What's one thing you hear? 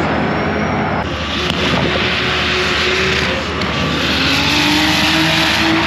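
Another race car engine rumbles and revs nearby.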